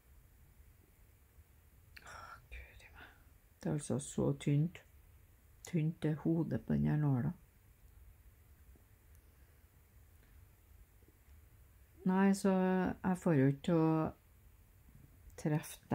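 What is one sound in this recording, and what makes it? A needle and thread pull softly through cloth.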